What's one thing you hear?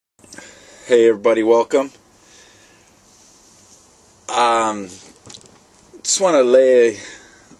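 A middle-aged man speaks with animation close to a microphone, in short bursts.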